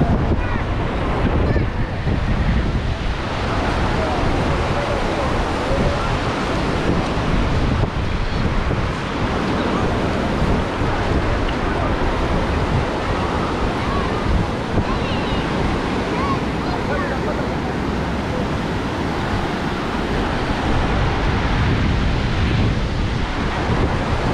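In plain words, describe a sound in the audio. Wind blows across the microphone.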